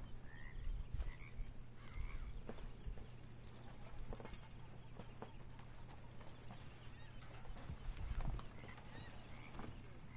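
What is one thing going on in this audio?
A horse's hooves thud slowly on dirt.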